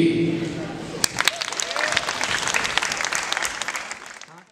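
A crowd claps rapidly.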